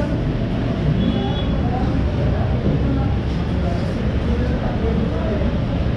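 Many people chatter steadily in a busy room.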